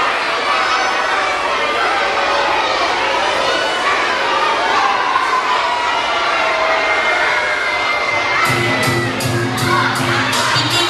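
A group of children sing together in a large echoing hall.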